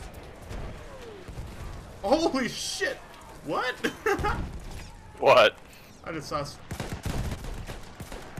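A rifle fires sharp single shots.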